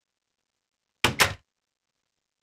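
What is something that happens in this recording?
A wooden chest lid creaks and thuds shut.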